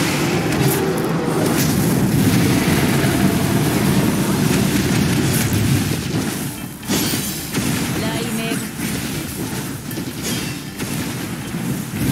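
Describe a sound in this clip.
Fiery explosions and electric blasts crackle and boom in quick succession.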